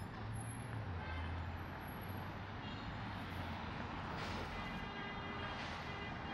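A scooter rolls past close by.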